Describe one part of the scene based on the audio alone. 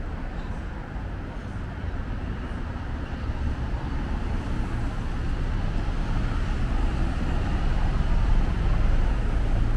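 City traffic rumbles steadily along a street, growing louder as cars pass close by.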